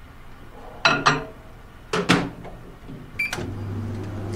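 A microwave beeps as its buttons are pressed.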